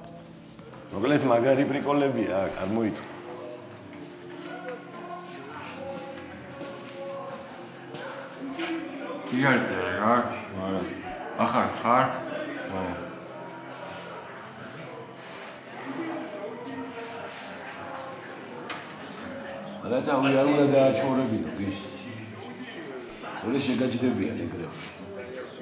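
A man speaks calmly nearby, with pauses.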